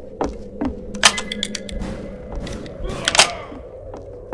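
A gun clicks and clacks as it is reloaded.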